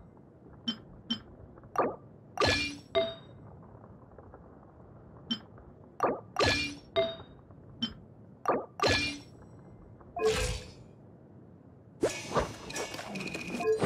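Short electronic clicks and chimes sound as menu items are selected.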